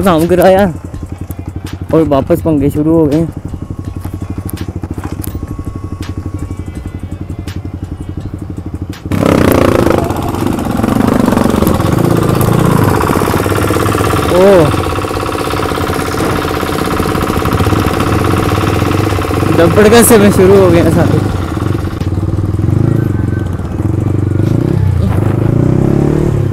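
A motorcycle engine runs close by, steady at first and then louder.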